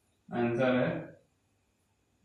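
A young man speaks calmly into a clip-on microphone.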